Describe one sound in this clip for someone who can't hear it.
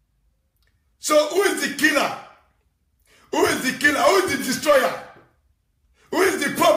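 A young man sings into a microphone, close and loud.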